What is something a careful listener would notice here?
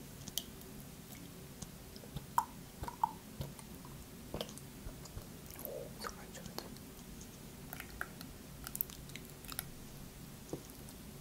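A carton crinkles and taps in a woman's hands.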